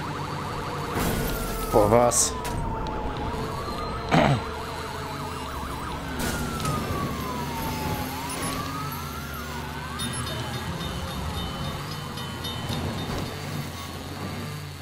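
A police siren wails, rising and falling.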